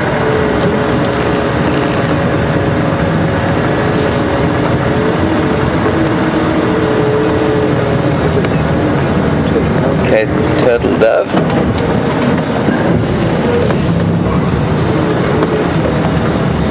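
An open vehicle's engine rumbles steadily as it drives.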